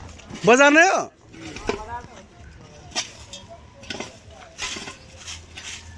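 A shovel scrapes and strikes dry ground.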